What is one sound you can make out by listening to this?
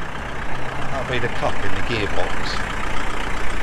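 A man speaks briefly from inside a van.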